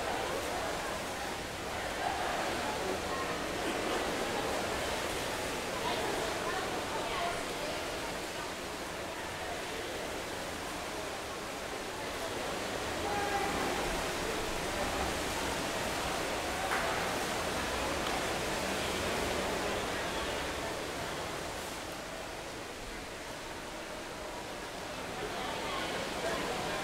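Water swirls and gurgles underwater as swimmers kick with fins.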